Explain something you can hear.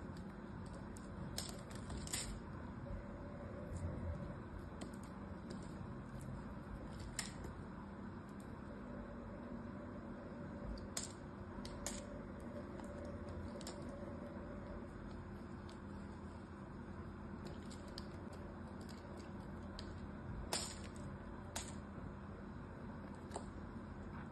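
Soap flakes crumble and patter onto a pile.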